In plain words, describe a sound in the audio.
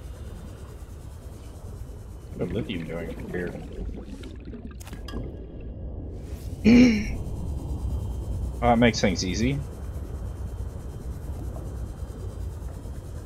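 A small submersible hums steadily underwater.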